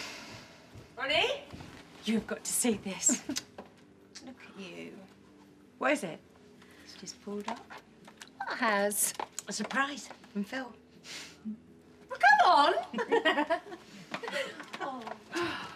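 Young women talk excitedly nearby.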